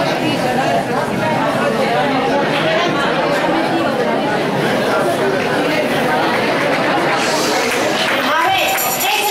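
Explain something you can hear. A crowd of people chatters and talks loudly in an echoing hall.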